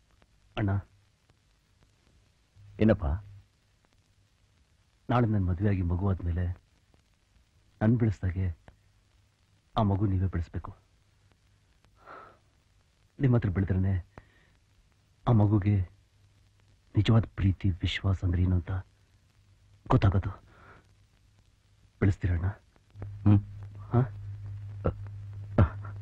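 A younger man speaks softly and pleadingly, close by.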